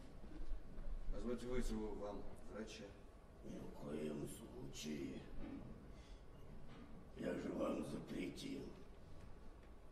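A man speaks into a handheld microphone, heard in a large room.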